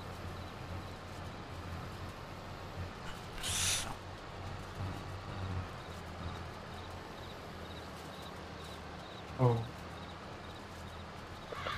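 A mower cuts through grass with a soft rustle.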